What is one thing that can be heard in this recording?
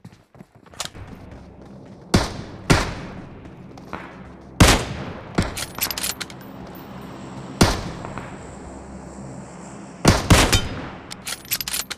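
Footsteps crunch on dirt as a soldier runs.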